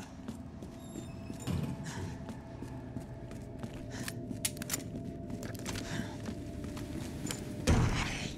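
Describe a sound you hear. Footsteps tread along a hard floor.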